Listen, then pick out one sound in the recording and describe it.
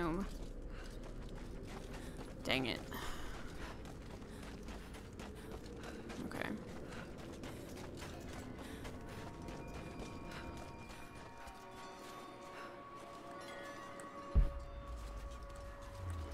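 Footsteps crunch on stony ground and snow.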